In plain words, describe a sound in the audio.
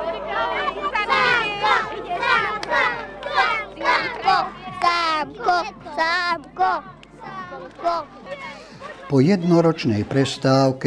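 Young children sing together close by.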